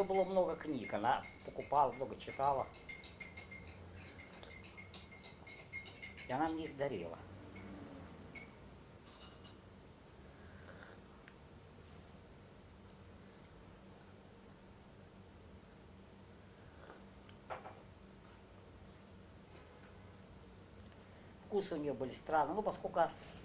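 An elderly man sips a drink.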